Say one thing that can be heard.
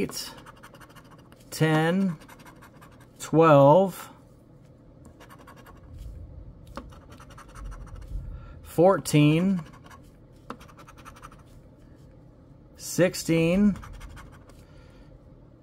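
A coin scrapes across a scratch-off ticket.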